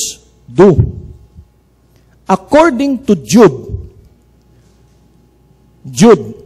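An older man speaks into a microphone in a slow, preaching voice, with pauses between phrases.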